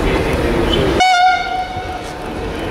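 A locomotive horn sounds a short loud blast.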